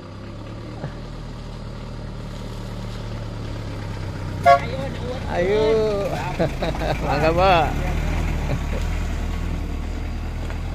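A small truck engine rumbles steadily as the truck drives slowly.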